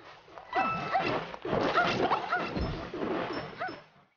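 Fireballs pop as a game character throws them.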